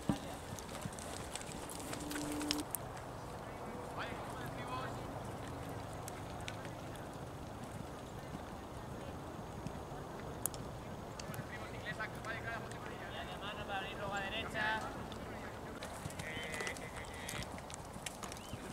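Horse hooves thud on soft sand.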